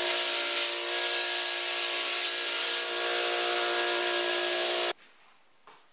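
A belt grinder runs with a loud, steady whine and rushing hiss.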